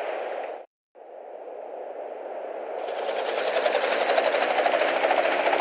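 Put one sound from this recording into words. A helicopter engine starts up and its rotor whirs faster and louder.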